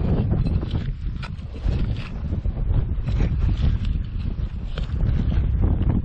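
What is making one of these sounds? A trowel blade scrapes into soil.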